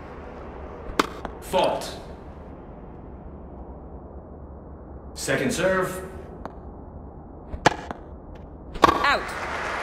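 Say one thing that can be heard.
A tennis ball is struck with sharp pops of a racket.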